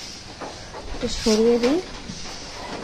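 A woman speaks briefly nearby.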